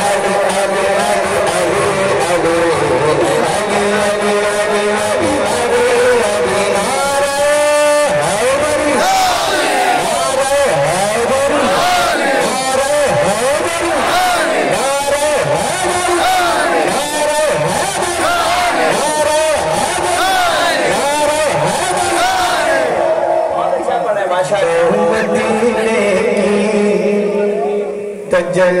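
A man sings loudly into a microphone through loudspeakers, in a large echoing space.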